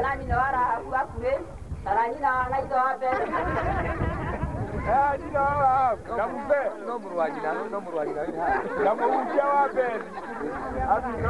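A crowd of men and women sings together outdoors.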